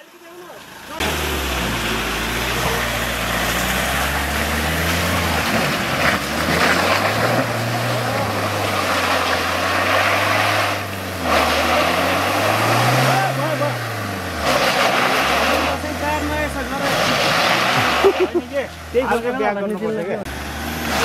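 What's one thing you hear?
Tyres churn and slip through thick mud.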